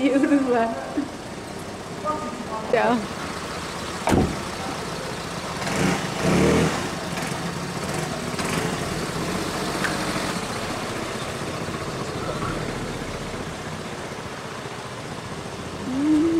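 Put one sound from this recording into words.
Traffic hums outdoors on a street.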